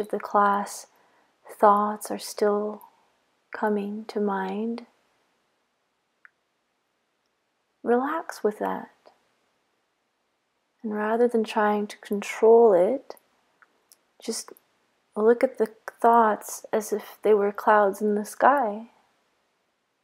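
A woman speaks slowly and calmly, close to the microphone, with long pauses.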